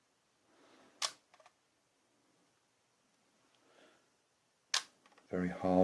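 A small device clicks in a hand.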